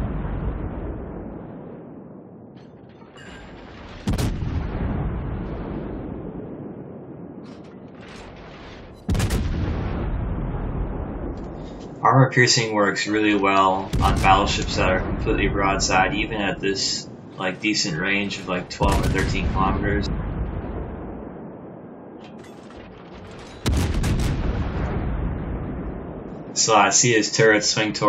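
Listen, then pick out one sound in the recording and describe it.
Heavy guns fire with deep booms that rumble away slowly.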